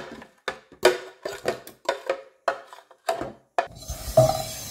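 A spoon clinks against a plastic jug as batter is poured into a bowl.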